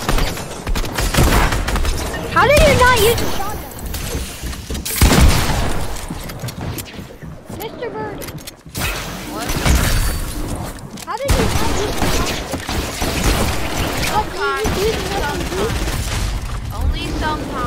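Shotgun blasts ring out.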